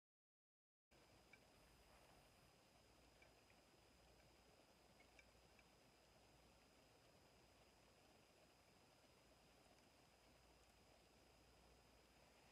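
A fork scrapes against a glass bowl.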